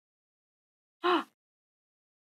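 A middle-aged woman gasps briefly.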